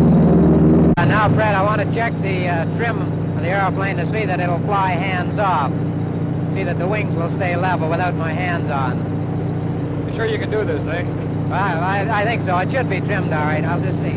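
A man talks with animation nearby.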